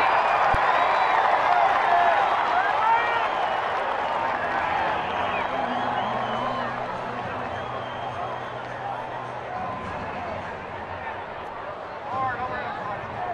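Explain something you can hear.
A large crowd cheers loudly outdoors and slowly quiets down.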